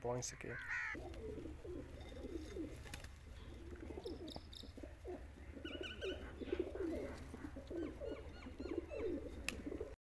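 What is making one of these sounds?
Pigeons coo softly.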